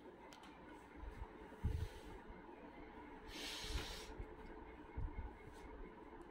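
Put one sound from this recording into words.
Fabric rustles as cloth is handled and laid down.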